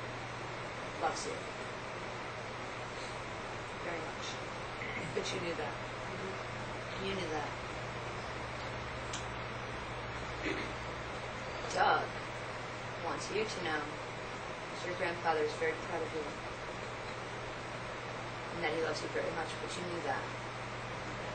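A young woman speaks in a low voice, with pauses.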